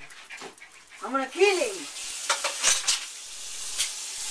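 Small dogs yelp and whine excitedly.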